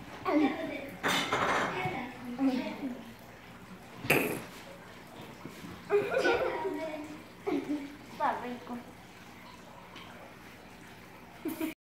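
A young girl talks playfully close by.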